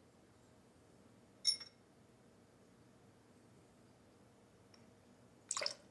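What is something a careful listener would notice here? Liquid pours into a metal shaker.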